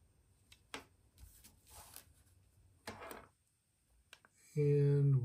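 Plastic clicks and rattles as a small device is handled.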